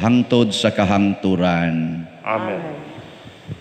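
An elderly man speaks calmly through a microphone in an echoing hall.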